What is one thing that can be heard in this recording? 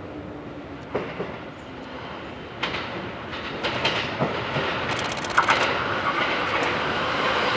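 Train wheels clatter over rail joints and points.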